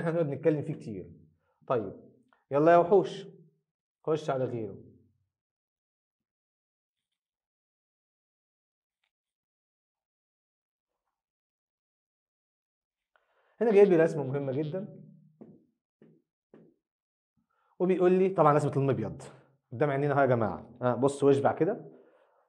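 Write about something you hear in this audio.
A man lectures with animation, close by, in short bursts with long pauses.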